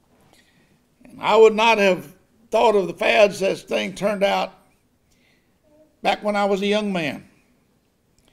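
An elderly man speaks slowly and earnestly through a microphone.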